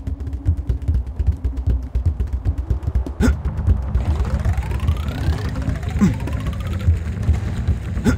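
Quick footsteps thud on stone as a runner sprints.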